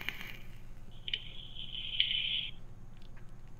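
A young woman exhales vapour with a soft hiss.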